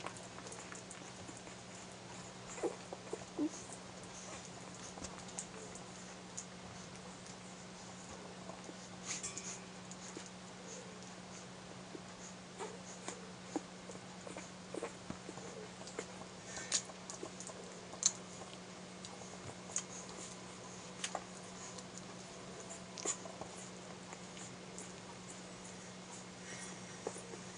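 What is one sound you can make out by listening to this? Newborn puppies squeak and whimper faintly now and then.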